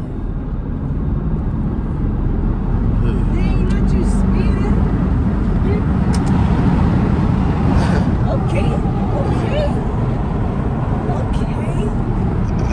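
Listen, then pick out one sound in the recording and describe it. A car engine hums steadily with road rumble inside the cabin.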